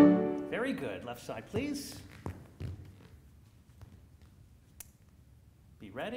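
A piano plays.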